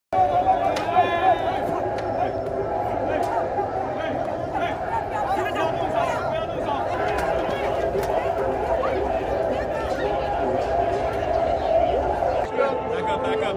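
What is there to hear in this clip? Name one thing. A crowd of men and women shouts and argues loudly outdoors.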